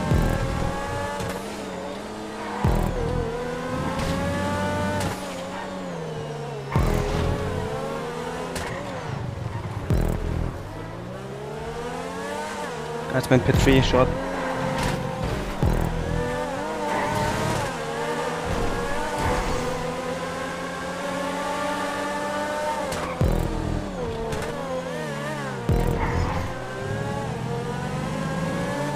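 A race car engine revs high and shifts gears as the car speeds along.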